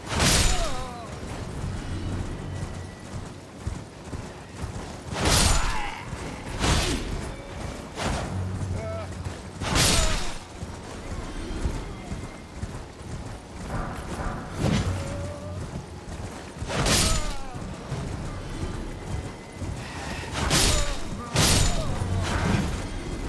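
Hooves gallop steadily over the ground.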